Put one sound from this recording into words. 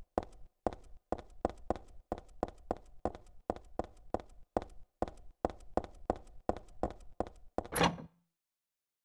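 Footsteps clatter quickly on metal stairs.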